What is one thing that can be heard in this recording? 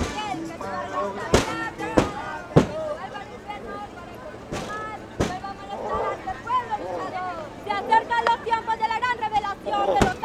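A crowd of people talks and calls out nearby, outdoors.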